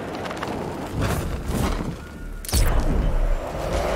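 A heavy body lands with a thud.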